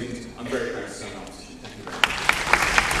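A young man speaks into a microphone in a large hall.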